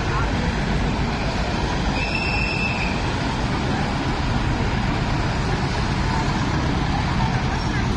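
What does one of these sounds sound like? Cars drive past on a street close by.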